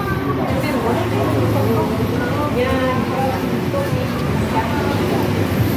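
Many men and women talk at once nearby.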